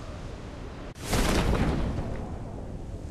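A parachute snaps open with a sudden loud whoosh.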